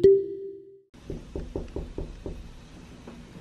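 A hand knocks on a door several times.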